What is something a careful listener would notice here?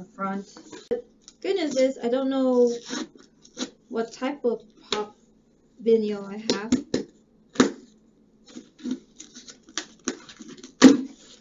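Cardboard packaging rustles and crinkles as it is opened.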